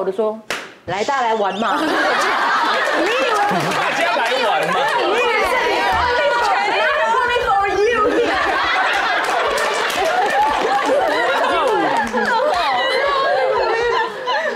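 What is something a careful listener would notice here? Several women laugh and cheer loudly.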